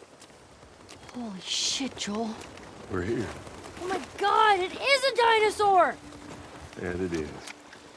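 A young woman speaks softly and with wonder.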